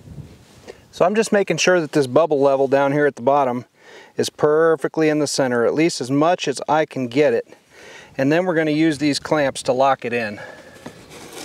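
A man speaks calmly and close up.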